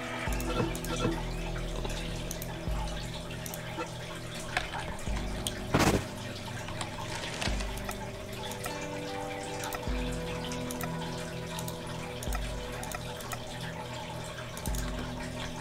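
Soft game menu clicks sound as options are chosen.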